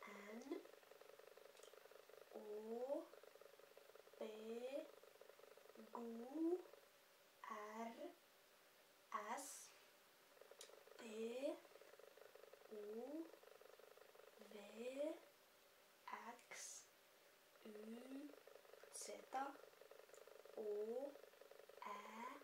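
A young woman speaks close by, slowly saying short sounds one by one with pauses between them.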